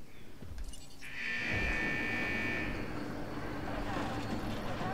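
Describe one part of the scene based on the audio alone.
A metal gate slides shut with a mechanical whirr and rattle.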